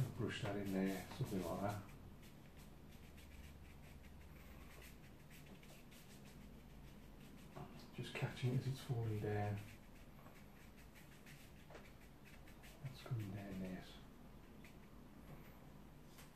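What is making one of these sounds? A brush sweeps softly across paper.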